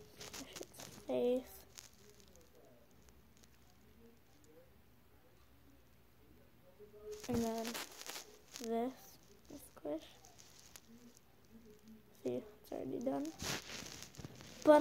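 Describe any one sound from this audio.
A young girl talks calmly, close by.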